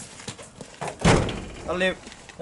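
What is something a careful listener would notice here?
A trailer door bangs shut.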